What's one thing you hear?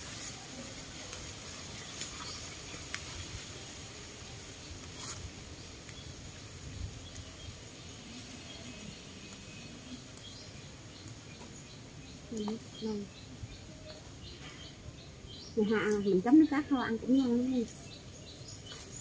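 Leaves rustle and stems snap as plants are picked by hand.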